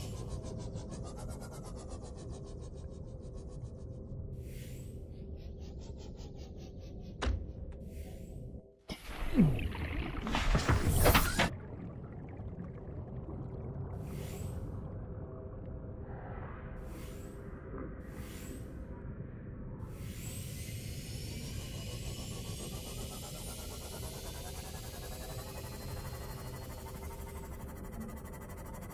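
A submarine's engine hums low and steadily.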